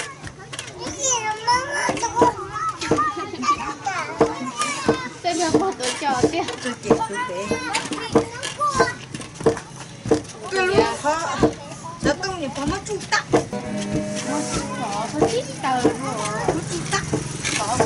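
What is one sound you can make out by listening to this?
A wooden pestle knocks repeatedly against stone.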